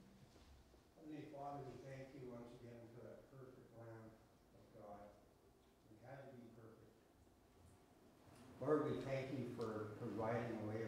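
A man speaks calmly and slowly into a microphone in a large room.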